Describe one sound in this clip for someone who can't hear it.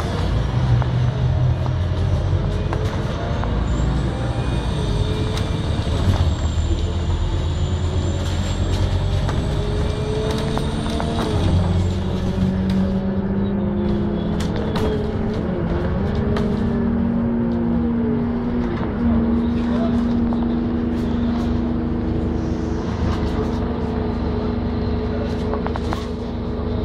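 An electric motor whines and rises in pitch as the vehicle speeds up.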